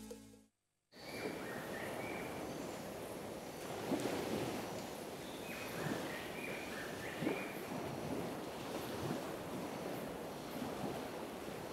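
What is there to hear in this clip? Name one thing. Light wind blows across open water outdoors.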